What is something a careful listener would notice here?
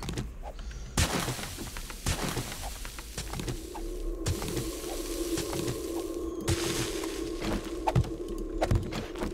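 A pickaxe strikes rock with sharp, heavy blows.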